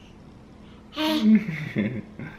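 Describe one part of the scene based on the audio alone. A baby squeals and giggles close by.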